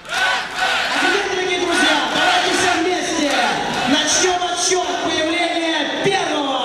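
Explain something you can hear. A man speaks loudly and with energy into a microphone over loudspeakers.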